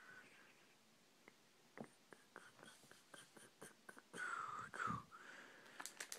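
Plastic binder pages crinkle and tap as they are turned and handled.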